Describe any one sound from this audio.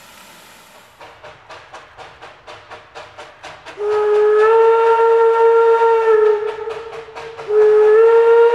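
A steam locomotive chuffs in quick, regular puffs in the distance.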